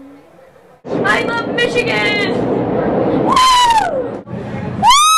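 A young girl shouts and squeals excitedly.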